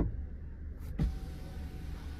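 A button clicks.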